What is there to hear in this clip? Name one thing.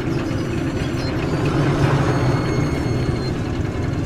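A heavy metal door slides open with a mechanical rumble.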